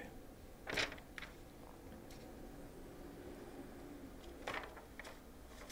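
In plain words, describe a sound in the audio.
Magazine pages rustle and flip.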